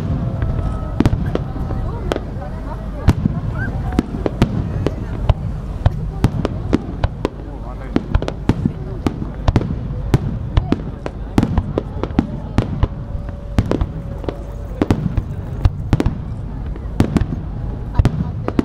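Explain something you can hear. A low rumble of exploding shells rolls on steadily.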